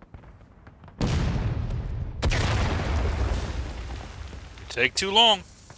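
A field cannon fires with a deep boom that rumbles away.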